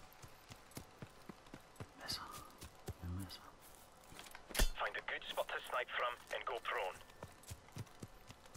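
Footsteps crunch steadily through dry grass and brush.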